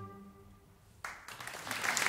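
Clarinets hold a final soft chord that fades out.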